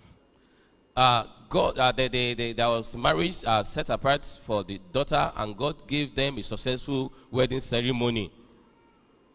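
A man speaks steadily into a microphone.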